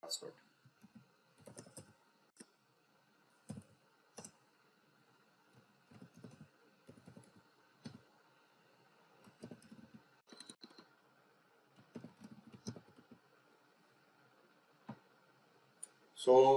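Keys clatter on a computer keyboard in short bursts.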